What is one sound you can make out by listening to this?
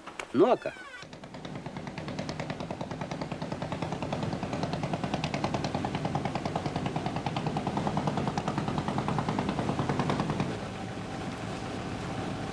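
A boat engine chugs steadily.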